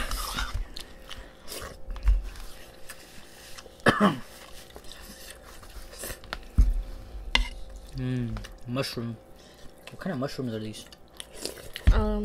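A man slurps and chews food close by.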